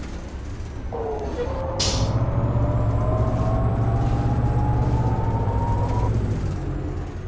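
A bus engine whines, rising in pitch as the bus speeds up.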